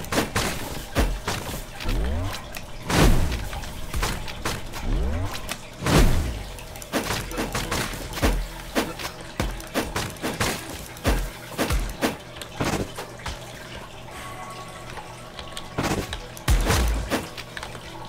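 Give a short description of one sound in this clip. Deep booming impacts thud now and then.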